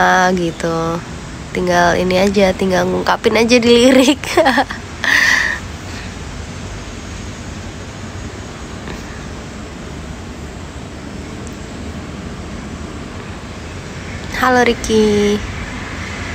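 A young woman speaks and laughs softly close to a microphone.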